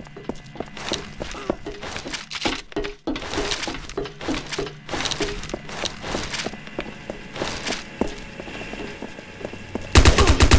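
Footsteps clank on a metal floor at a steady pace.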